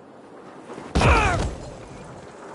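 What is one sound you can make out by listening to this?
A body lands heavily with a loud thump.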